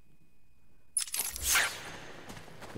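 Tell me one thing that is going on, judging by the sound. A video game menu closes with a sudden whoosh.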